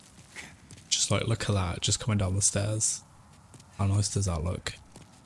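A man speaks through a microphone with animation.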